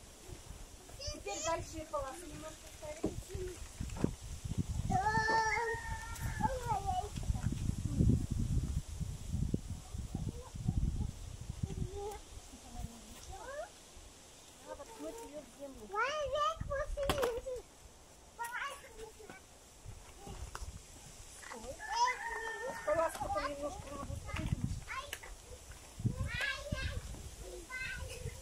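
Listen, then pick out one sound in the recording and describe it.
Children talk and call out nearby outdoors.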